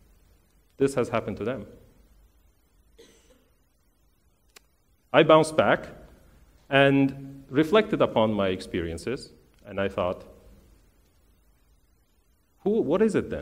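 A man speaks calmly through a headset microphone, with pauses.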